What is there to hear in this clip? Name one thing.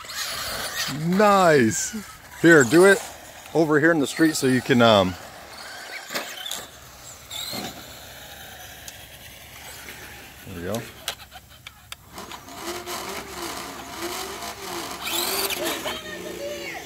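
A toy car's electric motor whines, revving up and down.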